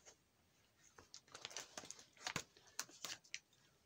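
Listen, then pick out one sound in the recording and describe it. Plastic binder sleeves rustle and crinkle as a page is turned.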